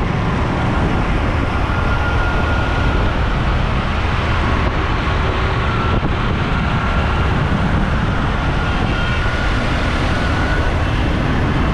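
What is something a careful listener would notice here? An auto rickshaw engine putters close by.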